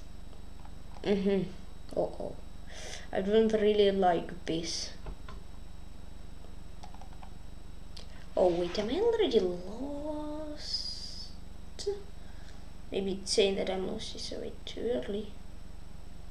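A boy talks calmly into a microphone, close by, in short bursts.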